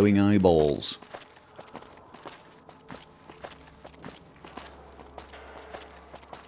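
Footsteps crunch steadily on a gritty floor.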